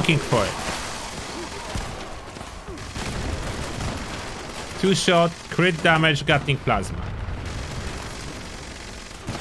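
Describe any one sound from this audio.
Gunfire rattles rapidly.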